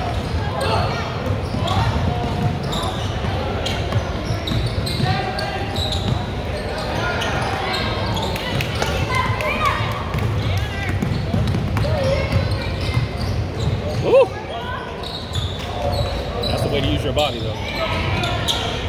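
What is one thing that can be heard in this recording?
A ball bounces on the court.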